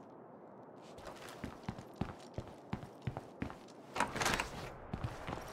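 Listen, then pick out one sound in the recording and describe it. A game character's footsteps tap on a wooden floor.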